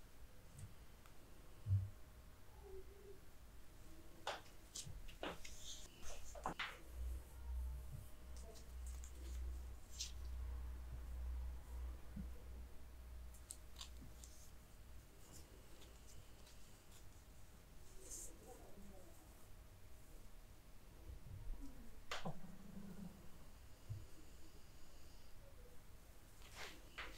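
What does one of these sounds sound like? A cloth measuring tape softly rustles and brushes against bare skin.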